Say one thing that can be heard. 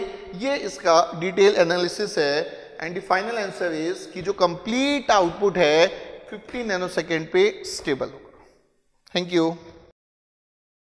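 A man explains with animation, close to a microphone.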